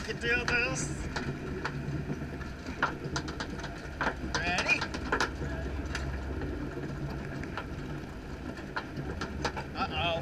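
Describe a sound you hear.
A ride car rumbles steadily along a track.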